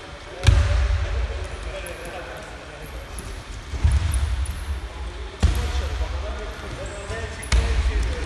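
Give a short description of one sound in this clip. Feet shuffle and squeak on the mats.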